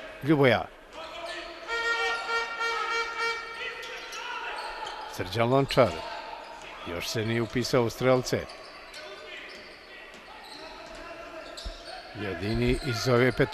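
A basketball bounces on a hard wooden court.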